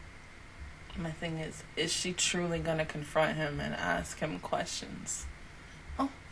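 A young woman speaks with animation, close into a microphone.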